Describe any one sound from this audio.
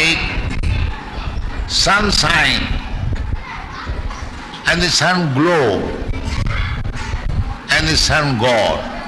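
An elderly man speaks with animation into a microphone, in a crackly old recording.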